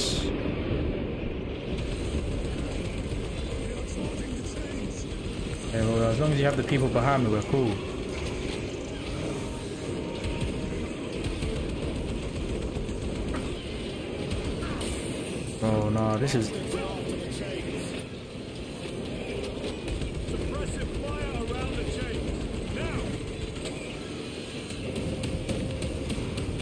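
Heavy gunfire rattles in rapid bursts.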